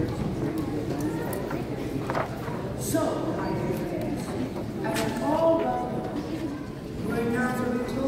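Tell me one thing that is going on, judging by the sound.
A piano plays in a large echoing hall.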